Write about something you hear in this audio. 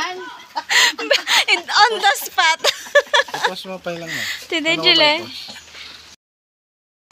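Women talk and laugh nearby.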